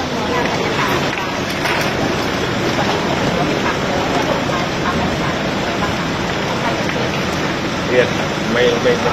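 A crowd murmurs nearby.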